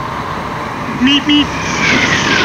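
A motorcycle horn beeps twice.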